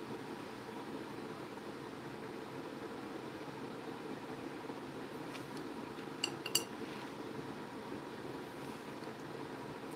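A paintbrush brushes softly across a tile.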